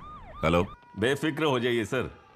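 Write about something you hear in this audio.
A man speaks gruffly into a phone.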